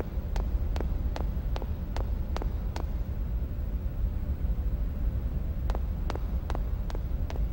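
Quick footsteps tap on a hard floor, stopping for a while and then starting again.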